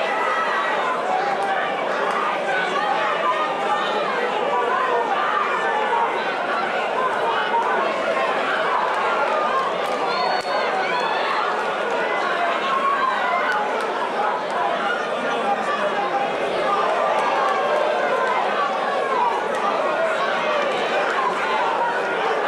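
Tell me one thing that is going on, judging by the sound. A crowd of spectators shouts and cheers.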